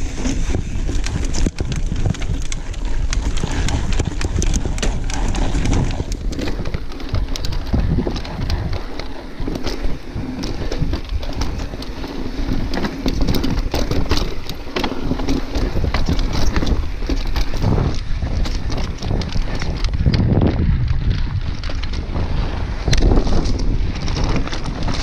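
Bike tyres roll and crunch over rock and gravel.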